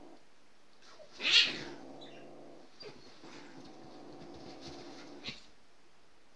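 A dog scrambles and paws at a soft blanket, rustling the fabric.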